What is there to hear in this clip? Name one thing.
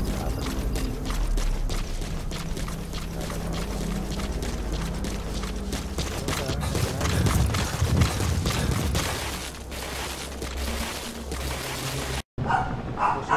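Footsteps crunch quickly over gravel and rock.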